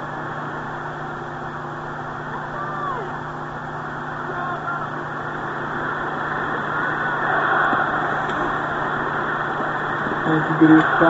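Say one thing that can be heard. A large crowd roars steadily, swelling louder for a while.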